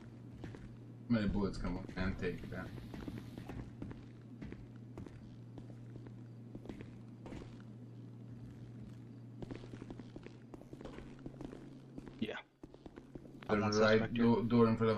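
Footsteps tread on a hard floor indoors.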